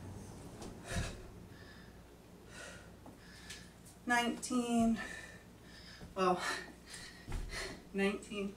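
Sneakers thud softly on a carpeted floor.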